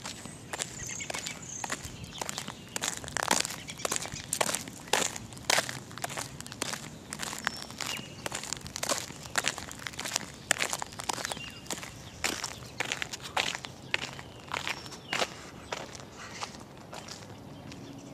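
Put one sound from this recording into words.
Footsteps scuff and crunch on gritty pavement close by.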